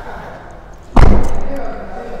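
A car tailgate slams shut with a loud thud.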